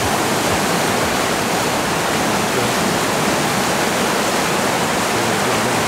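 Whitewater rushes and roars loudly.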